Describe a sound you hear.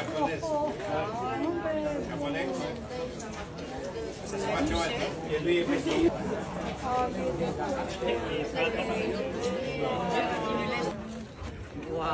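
Several people chatter around outdoors.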